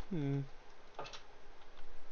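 A wooden door opens.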